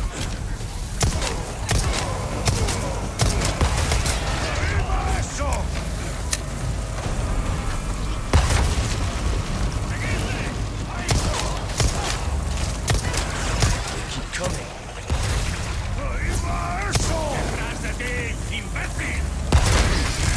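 A pistol fires sharp shots, one after another.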